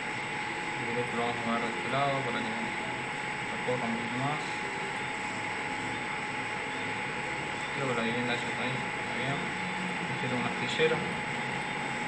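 A young man speaks calmly into a microphone, in short bursts.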